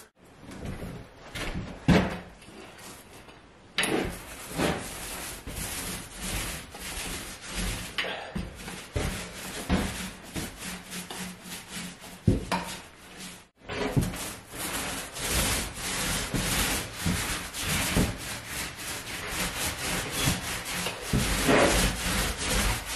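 A brush swishes and scrapes over the floor in repeated strokes.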